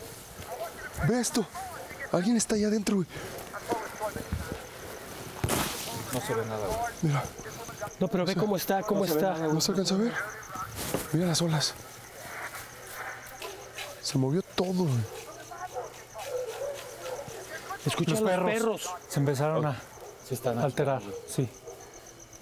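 Men talk in hushed, tense voices close by.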